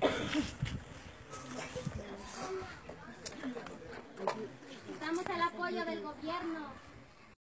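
A crowd of men, women and children talks and murmurs close by outdoors.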